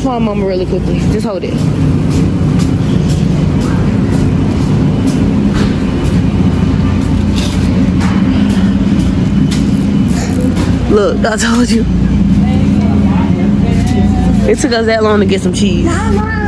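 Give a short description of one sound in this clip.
A shopping cart rattles and rumbles as it rolls along.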